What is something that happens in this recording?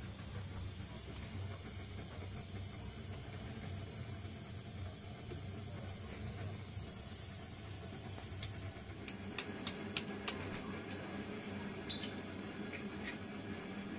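A gas burner roars under a pot.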